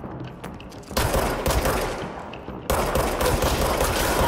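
A pistol fires shots in rapid bursts.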